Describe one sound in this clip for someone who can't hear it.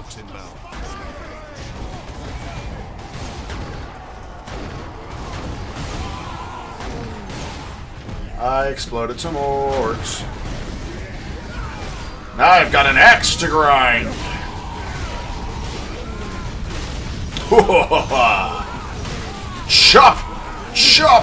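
Gunfire and clashing blows ring out in a video game battle.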